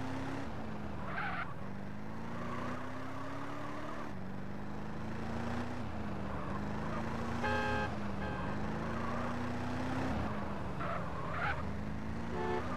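Car tyres screech briefly through sharp turns.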